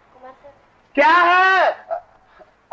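A man cries out loudly in a long drawn-out shout.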